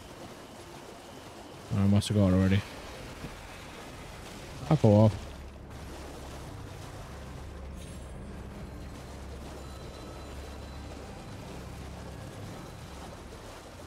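A horse's hooves splash through shallow water.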